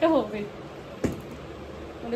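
A box lid knocks shut.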